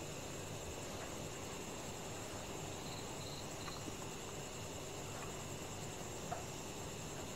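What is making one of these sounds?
A spoon clinks softly against a bowl.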